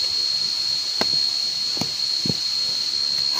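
Pieces of wood knock as they are set down on the ground.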